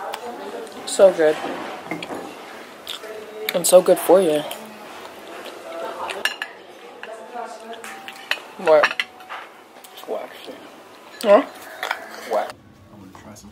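A knife scrapes and clinks against a plate.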